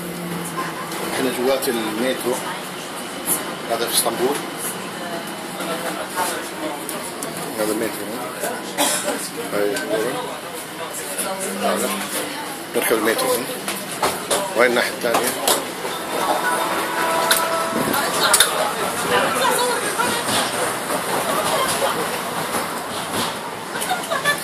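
A tram rumbles and rattles along steadily.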